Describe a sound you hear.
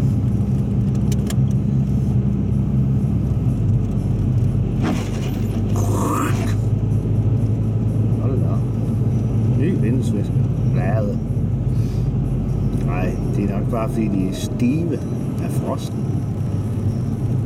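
Tyres crunch and hiss over a snowy road.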